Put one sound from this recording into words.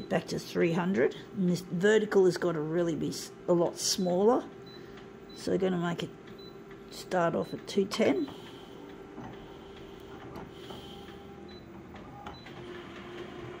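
A copier beeps softly as keys are pressed.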